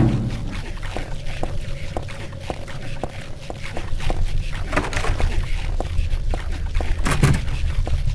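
Footsteps fall on a hard floor.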